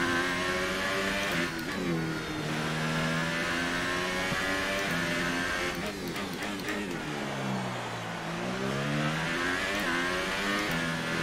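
A racing car engine screams loudly, its pitch dropping and rising again as it revs through the gears.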